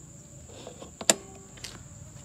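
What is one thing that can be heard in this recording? A plastic lid snaps shut.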